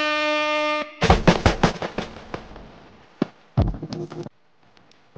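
Music plays from a turntable with sharp, punchy hits.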